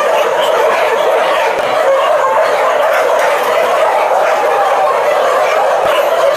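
Many dogs bark and yelp nearby.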